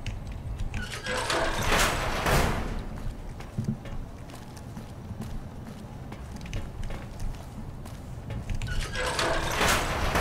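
A heavy metal door rumbles and hisses as it slides open.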